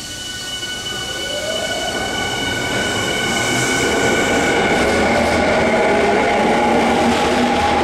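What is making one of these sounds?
A train's motor whines steadily.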